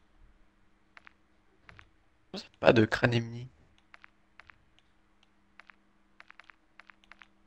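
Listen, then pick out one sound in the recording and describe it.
Soft menu clicks tick again and again.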